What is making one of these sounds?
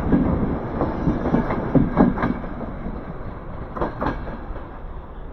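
A departing train's wheels clack over rail joints as it rolls away.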